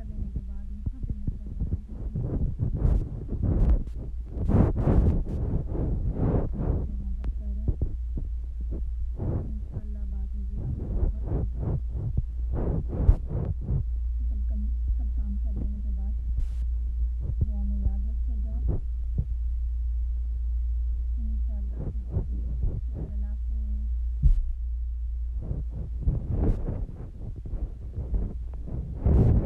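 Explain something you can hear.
Young children talk quietly nearby.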